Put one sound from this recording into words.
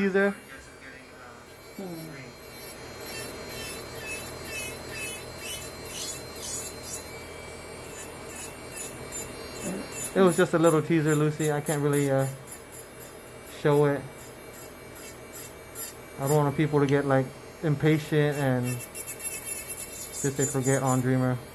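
An electric nail drill whirs with a high, steady whine.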